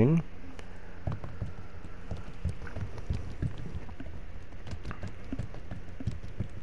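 Liquid glugs and splashes as it pours from a jug.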